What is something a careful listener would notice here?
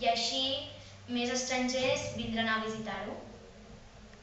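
A young girl speaks calmly and clearly, close by.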